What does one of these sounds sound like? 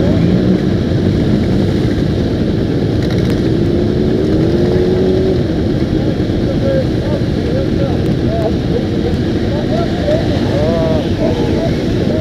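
Motorcycles ride past slowly, their engines revving.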